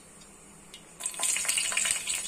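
Green chillies drop into hot oil with a sudden hiss.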